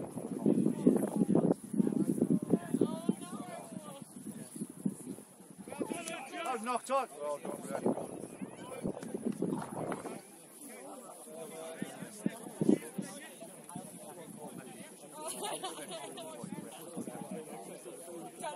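Young players shout and call to each other across an open field, some distance away.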